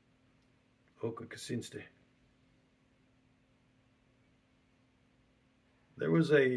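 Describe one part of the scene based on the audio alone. A middle-aged man speaks calmly into a close microphone, in short bursts.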